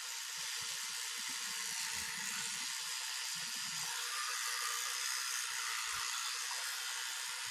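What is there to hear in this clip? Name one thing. An electric toothbrush buzzes steadily close by.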